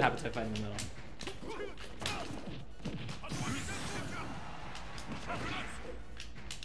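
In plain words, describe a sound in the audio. Fighting game hits and blasts crack and whoosh.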